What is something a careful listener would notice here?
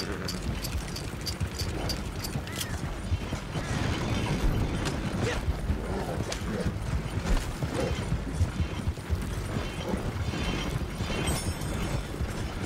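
A wooden wagon rumbles and creaks over a dirt track.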